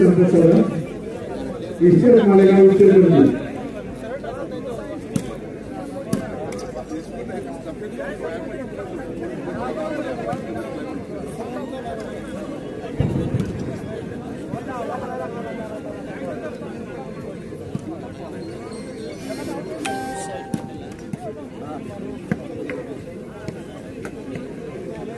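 Several men talk close by, outdoors.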